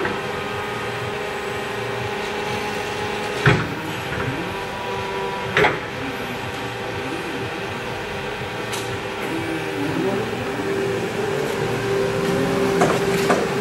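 An electric forklift motor hums steadily with a high whine.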